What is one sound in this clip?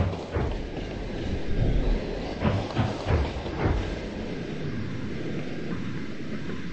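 A steam engine chuffs rhythmically as a train runs along the tracks.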